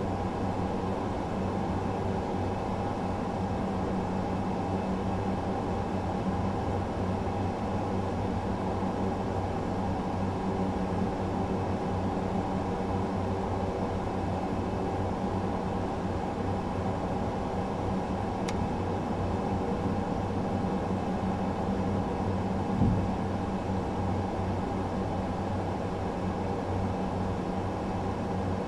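Jet engines hum steadily from inside a cockpit.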